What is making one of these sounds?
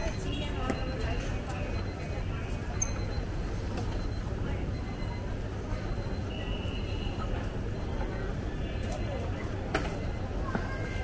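Steady low street noise hums outdoors.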